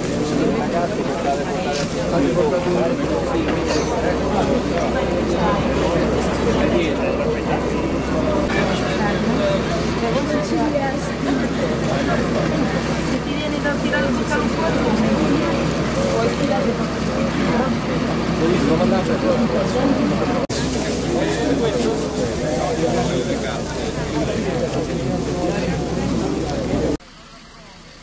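A crowd of men and women shout and talk over each other outdoors.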